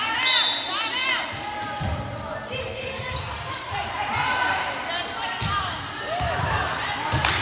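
Young women call out to each other in a large echoing gym.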